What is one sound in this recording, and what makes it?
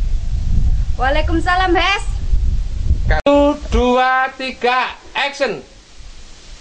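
A young woman speaks close by.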